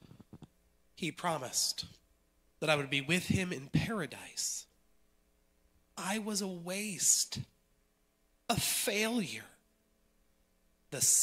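A man speaks into a microphone over loudspeakers in an echoing hall, with pauses.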